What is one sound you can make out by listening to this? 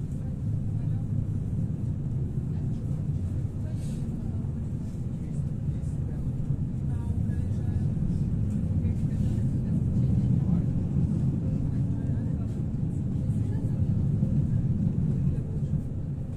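A tram rumbles steadily along its rails, heard from inside.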